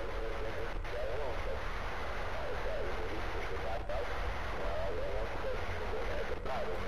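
A handheld radio device crackles with steady static and warbling tones.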